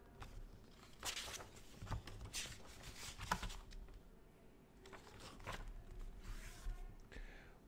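Paper pages rustle as a book's pages are turned.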